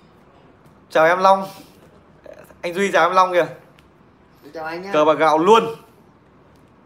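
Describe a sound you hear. A young man speaks calmly and close by, in short phrases.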